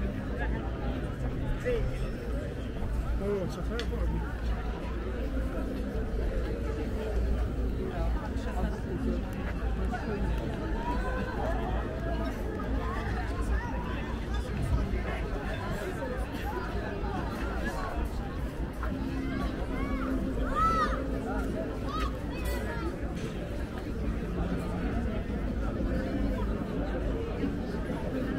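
Footsteps scuff steadily on pavement.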